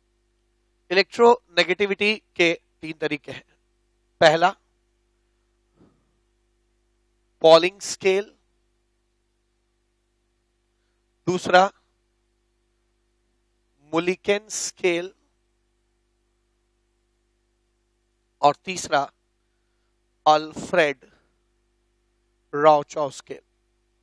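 A man speaks calmly into a close microphone in short bursts.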